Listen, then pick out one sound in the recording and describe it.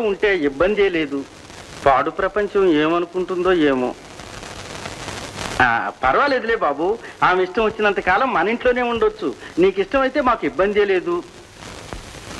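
A man speaks with feeling, close by.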